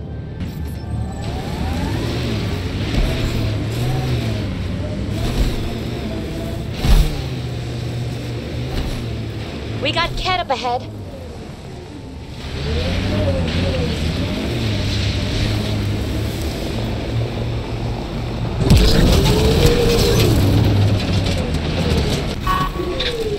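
A vehicle engine hums and revs as it drives over rough ground.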